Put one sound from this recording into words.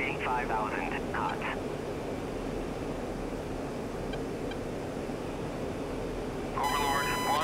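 A jet engine rumbles steadily.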